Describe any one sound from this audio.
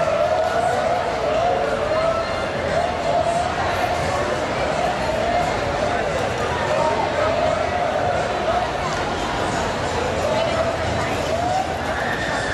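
A police siren wails nearby in a quick rising and falling pattern.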